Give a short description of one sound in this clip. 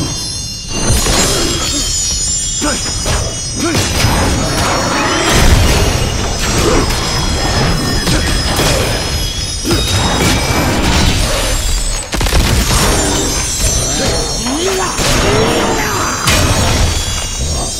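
Magic blasts burst with loud whooshing crashes.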